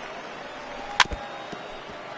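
A ball smacks sharply into a catcher's mitt.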